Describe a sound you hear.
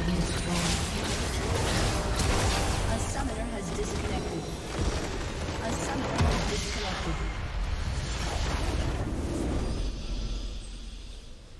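Spells blast and crackle in a loud video game battle.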